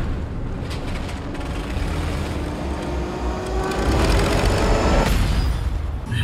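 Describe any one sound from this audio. A propeller plane's engine drones and rises in pitch as it swoops low.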